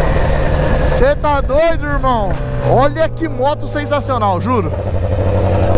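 A motorcycle engine revs up and down sharply several times.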